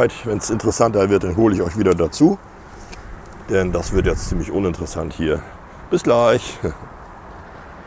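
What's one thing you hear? A man speaks calmly close by.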